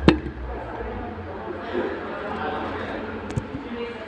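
A young man sips a drink through a straw.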